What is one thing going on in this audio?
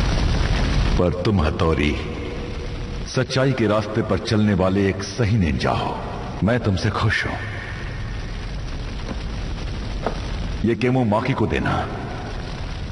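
A man speaks slowly and gravely, close by.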